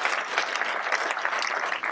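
An elderly woman claps her hands.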